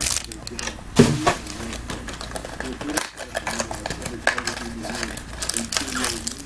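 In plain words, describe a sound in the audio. A foil wrapper crinkles and tears open in someone's hands.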